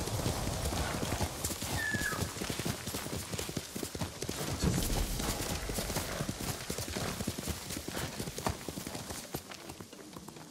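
A horse gallops over leaf-covered ground with fast, thudding hoofbeats.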